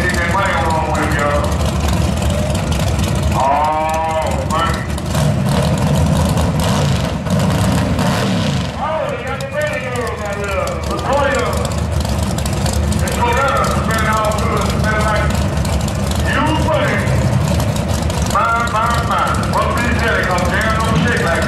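A race car engine rumbles loudly at idle.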